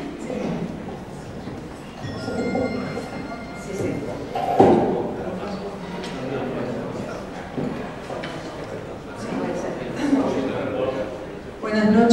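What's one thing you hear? A young woman speaks into a microphone over a loudspeaker in a reverberant hall.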